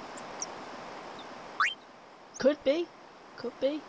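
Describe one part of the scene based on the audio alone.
A short electronic blip sounds as a menu selection moves.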